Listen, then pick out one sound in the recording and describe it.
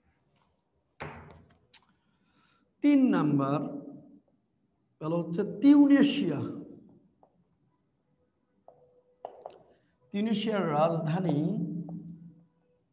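A man speaks calmly, as if explaining to a class.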